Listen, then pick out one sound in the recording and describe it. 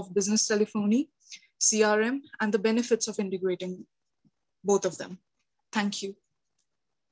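A young woman speaks calmly through a microphone, as if on an online call.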